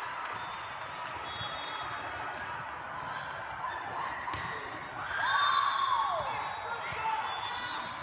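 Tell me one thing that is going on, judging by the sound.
Young women cheer and shout on court.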